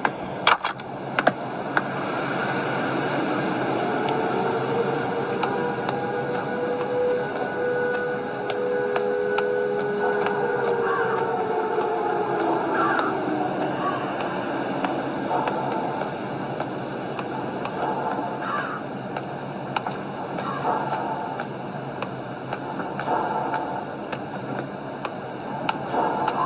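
Eerie, droning game music plays from a tablet speaker.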